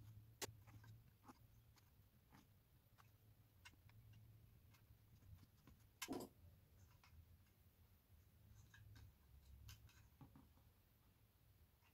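Wire scrapes and clicks against a wooden frame as it is twisted by hand.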